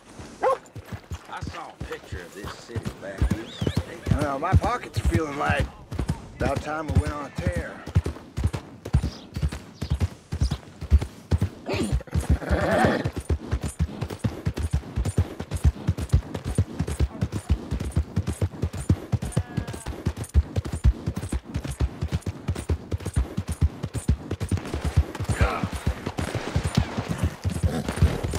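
Horse hooves thud steadily on soft ground at a trot.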